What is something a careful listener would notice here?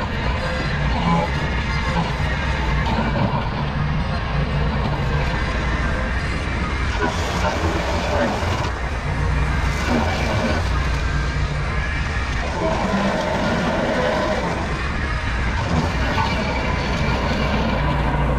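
A mower engine runs steadily close by.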